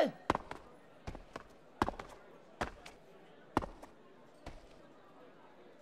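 Heavy footsteps thud on a hard floor at a steady walking pace.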